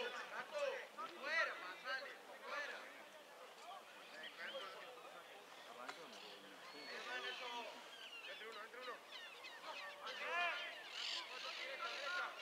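Young men shout to each other across an open outdoor field, heard from a distance.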